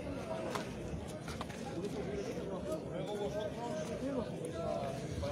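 A crowd of men talk and call out to one another outdoors.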